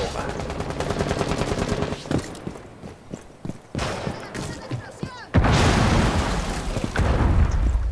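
Footsteps thud on a hard rooftop.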